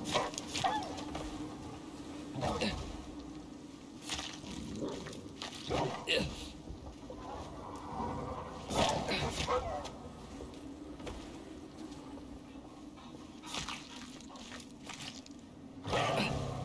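A knife slices wetly into an animal carcass, again and again.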